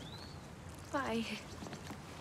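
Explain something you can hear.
A young woman speaks briefly.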